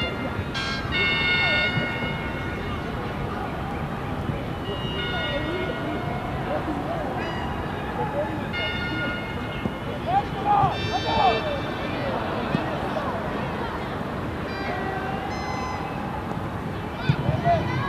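A stadium crowd murmurs and cheers outdoors.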